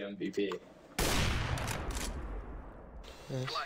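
A sniper rifle fires a single loud shot that echoes and fades.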